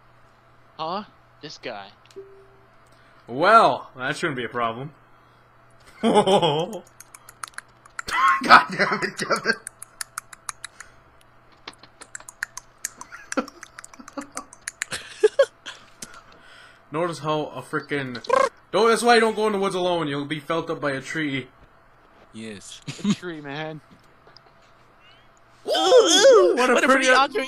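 A young man talks animatedly and laughs close to a microphone.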